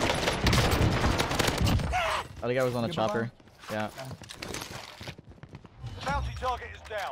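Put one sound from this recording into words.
Rapid gunshots fire close by.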